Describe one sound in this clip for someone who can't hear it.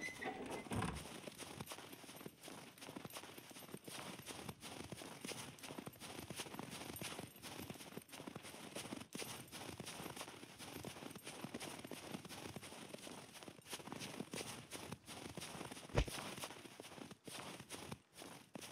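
Footsteps crunch quickly through deep snow.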